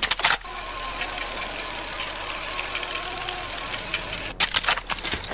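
A rope winch whirs steadily while hauling a climber upward.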